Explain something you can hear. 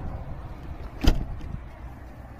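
A door shuts with a loud bang.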